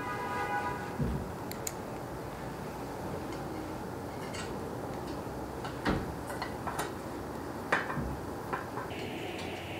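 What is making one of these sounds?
A screwdriver clicks and taps against metal parts.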